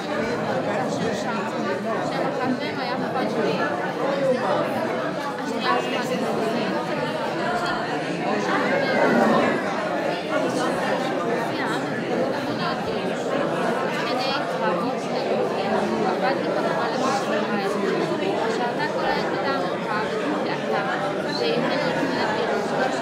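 A crowd of people chatter in a room.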